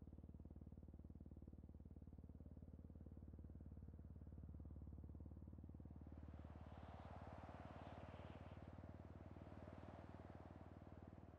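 A deep mechanical hum drones steadily.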